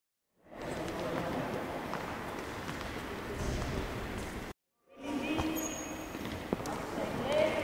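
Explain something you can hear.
Sneakers squeak and patter on a wooden court in a large echoing hall.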